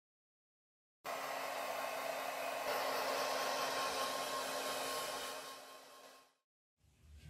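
A hair dryer blows with a steady whirring roar.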